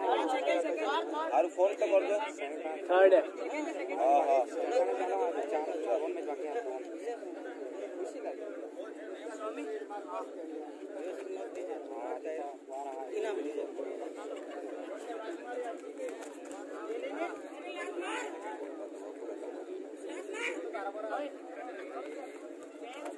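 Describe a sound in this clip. A crowd of young men chatters and shouts outdoors.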